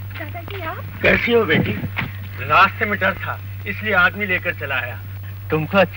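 A woman sings nearby.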